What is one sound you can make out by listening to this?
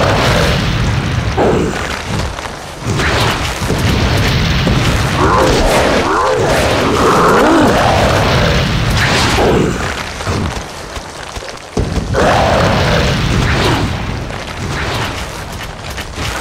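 Fires roar and crackle.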